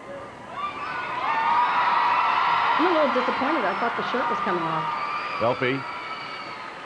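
A large crowd cheers and applauds in an echoing arena.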